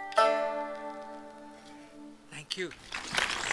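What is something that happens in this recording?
A stringed instrument strikes a final chord that rings out and slowly fades.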